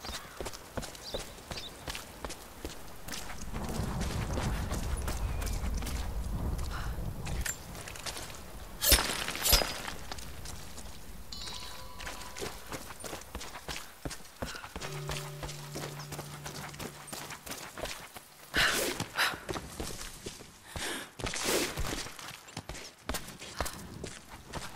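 Footsteps crunch on stone and dirt.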